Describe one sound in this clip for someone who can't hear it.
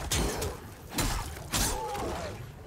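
A blade strikes with a sharp clang.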